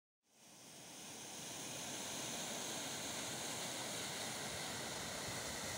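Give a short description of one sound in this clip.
Water rushes and splashes steadily down a spillway outdoors.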